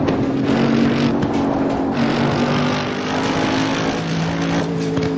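A racing car engine roars steadily, its pitch shifting as it changes gear and speeds up.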